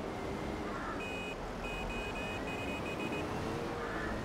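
A reversing alarm beeps rapidly.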